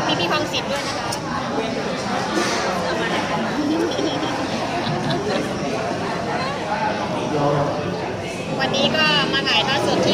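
Several people chatter close by.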